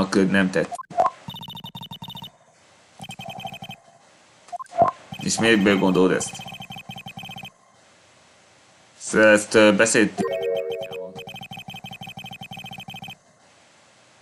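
Quick electronic blips chatter in bursts from a video game.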